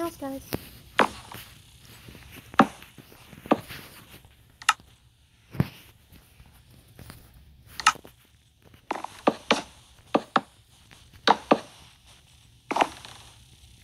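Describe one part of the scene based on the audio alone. Wooden blocks thud as they are placed one after another.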